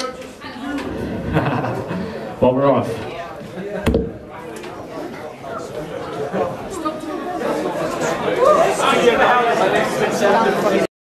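A crowd of young people chatters and shouts close by.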